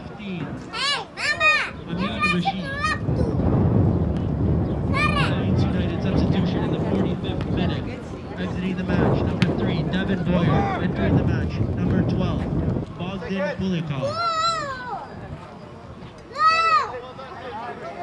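Young men shout loudly across an open field.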